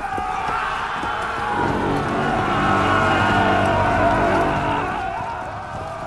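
A group of men shout a battle cry together.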